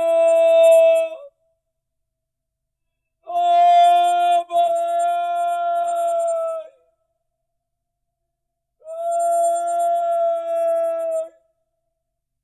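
An elderly man cries out loudly in long, drawn-out wails.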